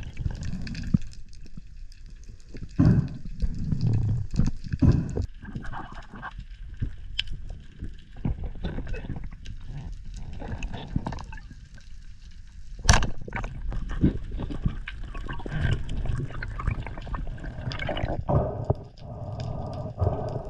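Water rumbles and swirls in a muffled underwater hush.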